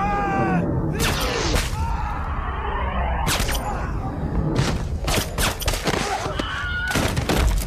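Gunshots ring out loudly in a large echoing hall.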